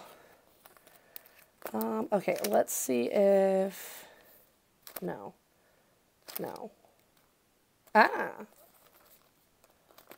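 Plastic binder pages crackle as they are turned.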